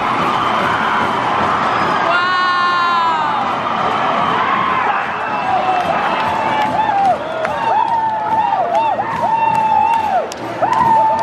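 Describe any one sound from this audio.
A large crowd cheers and shouts across an open stadium.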